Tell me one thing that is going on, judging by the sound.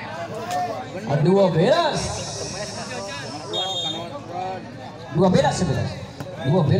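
Young men call out and chatter loudly outdoors.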